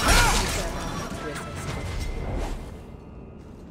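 A magic spell bursts with a loud crackling whoosh and then fades.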